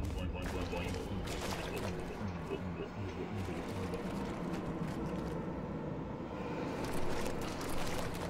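Thick liquid gel pours and splatters onto a floor.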